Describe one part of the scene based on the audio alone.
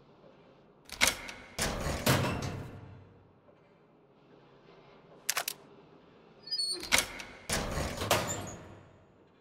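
A heavy metal drawer door creaks and clanks open.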